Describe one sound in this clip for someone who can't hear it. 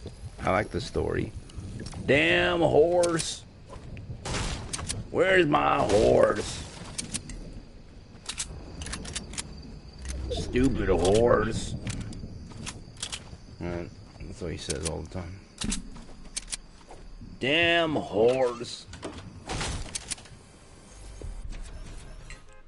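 A middle-aged man talks casually into a close microphone.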